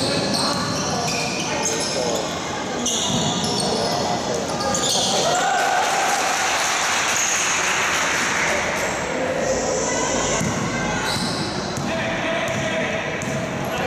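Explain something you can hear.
Basketball sneakers squeak on a wooden court floor in an echoing hall.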